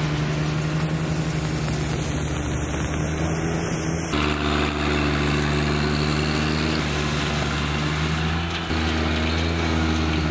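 A tractor engine hums steadily close by.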